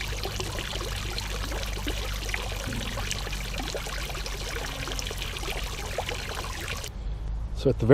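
Water trickles gently over stones.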